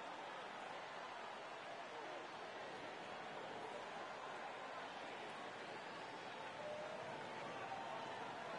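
A large crowd murmurs and chatters steadily in an echoing arena.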